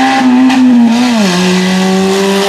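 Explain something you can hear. A rally car engine drops sharply in pitch as the gear changes.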